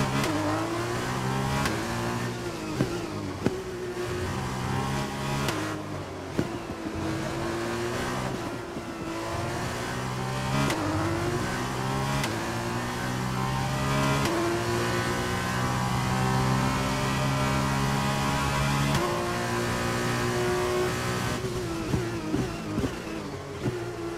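A racing car engine screams, rising in pitch through each gear and dropping as it brakes.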